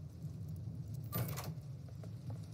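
A key turns in a door lock with a click.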